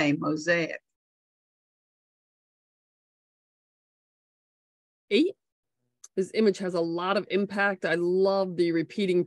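A woman speaks calmly into a close microphone, with pauses.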